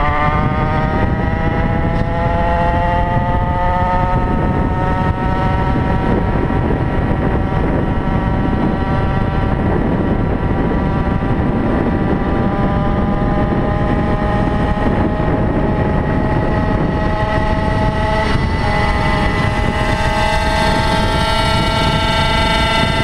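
A two-stroke gas-powered stand-up scooter whines at high revs, its pitch slowly climbing.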